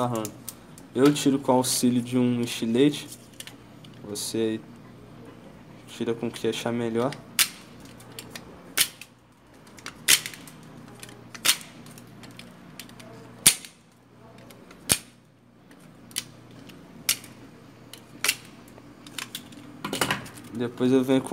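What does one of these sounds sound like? Small plastic parts click and tap against each other.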